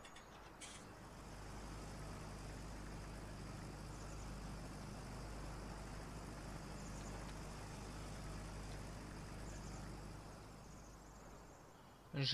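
A combine harvester's engine rumbles low and steady.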